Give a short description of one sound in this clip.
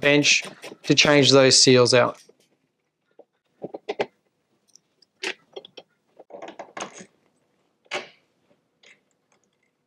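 A wrench turns a bolt with a soft metallic scrape.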